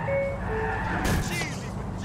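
A car scrapes and crunches against a kerb.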